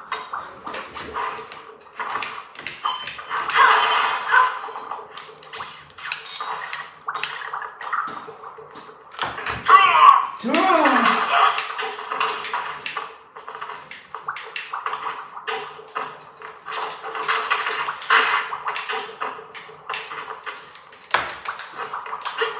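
Fighting game sound effects of hits, jumps and clashes play through a television speaker.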